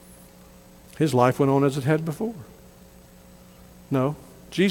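A man speaks slowly and emphatically through a microphone in a large room.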